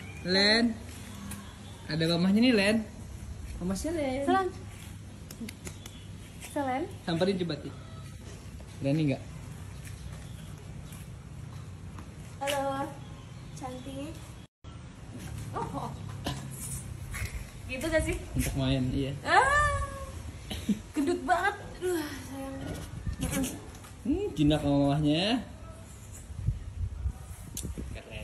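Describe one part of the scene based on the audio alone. A young woman talks and laughs with animation close by.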